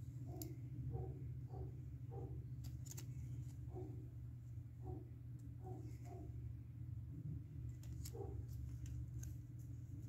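Paper tags rustle and flap between fingers.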